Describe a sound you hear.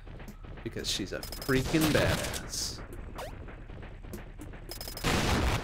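Video game sound effects chirp and whoosh.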